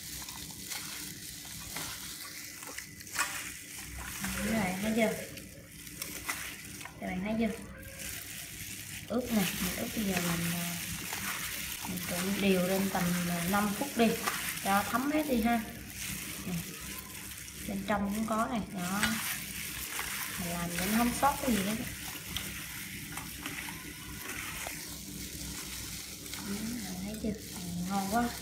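Wet shellfish squelch and clatter as hands toss them in a metal pot.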